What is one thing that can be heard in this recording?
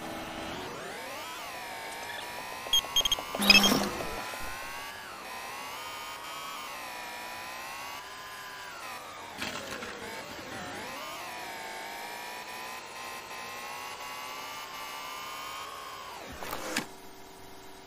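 A bus engine whines, rising and falling in pitch as it speeds up and slows down.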